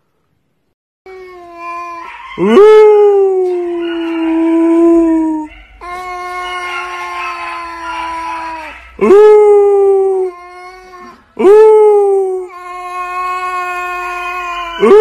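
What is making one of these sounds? A cat meows loudly and long, over and over, close by.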